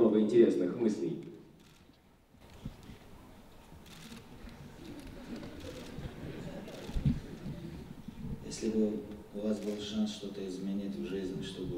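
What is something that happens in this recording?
A young man reads out into a microphone, heard through a loudspeaker in a large hall.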